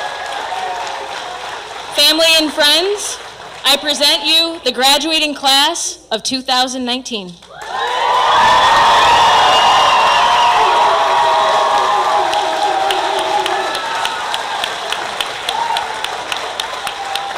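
A woman claps her hands close by.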